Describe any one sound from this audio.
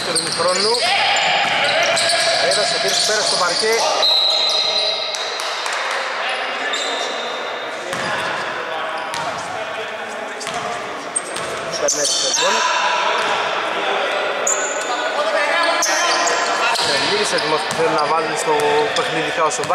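A man shouts instructions loudly in an echoing hall.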